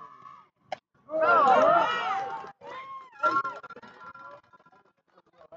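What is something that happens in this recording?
Young women cheer and shout loudly outdoors.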